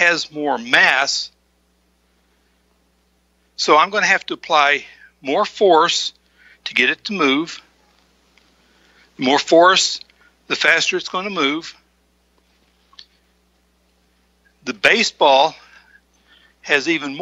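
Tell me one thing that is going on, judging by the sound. A middle-aged man speaks clearly and with animation through a microphone, in short bursts with pauses.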